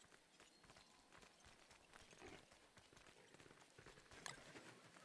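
Soft footsteps patter on hard ground.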